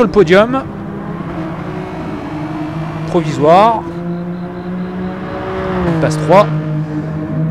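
A racing car engine climbs in pitch and drops sharply at each gear change.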